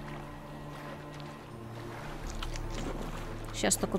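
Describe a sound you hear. Footsteps wade through shallow water.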